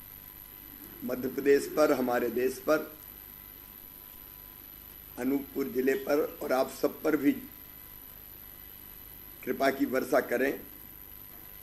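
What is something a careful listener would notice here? A middle-aged man speaks calmly in short phrases.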